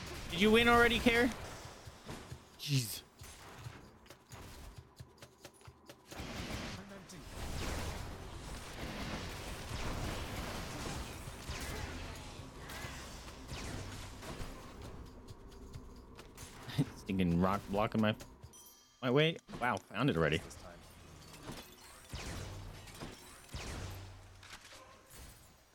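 Magic blasts and impacts crackle and thud in a fast fight.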